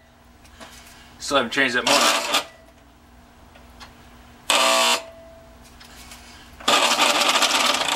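A metal lathe chuck clicks and rattles as it is turned by hand.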